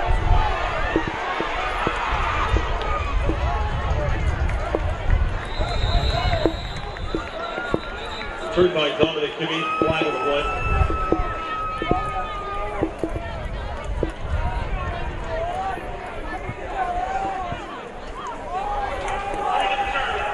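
A crowd cheers and murmurs in a large outdoor stadium.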